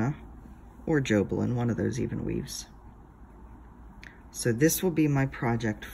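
Fabric rustles softly under fingers.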